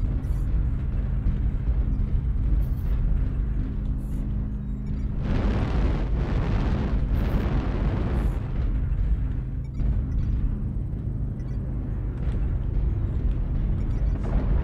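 A heavy walking machine rumbles and hums steadily.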